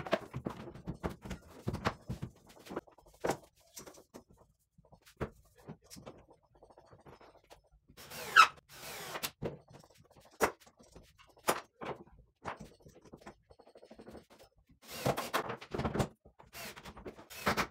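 Wooden parts knock and clatter as someone works on them.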